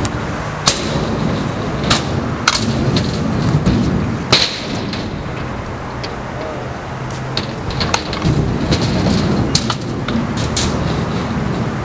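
Scooter wheels roll and rattle on a concrete ramp.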